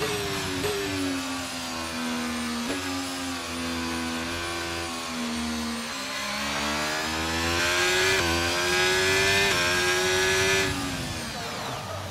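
A racing car engine whines loudly, its pitch rising and dropping with each gear shift.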